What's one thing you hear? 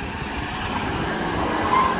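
A trailer rattles as a pickup truck tows it past.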